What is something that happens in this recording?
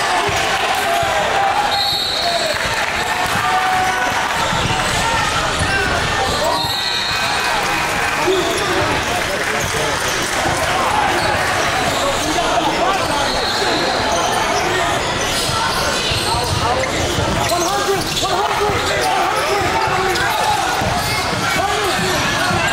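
A crowd chatters and cheers in an echoing gym.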